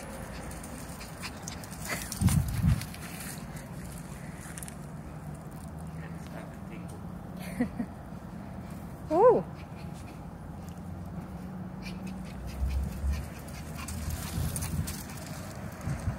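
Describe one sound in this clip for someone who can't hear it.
A small dog patters quickly across dry mulch.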